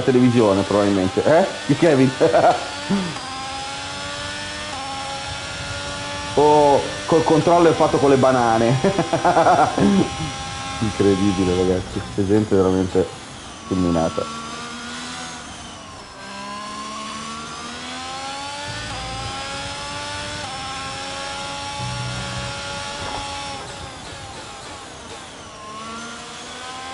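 A racing car engine revs high and shifts gears.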